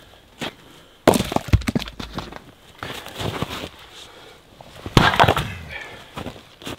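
Logs thud and clatter onto a pile.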